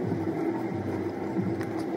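A spray bottle hisses in short bursts.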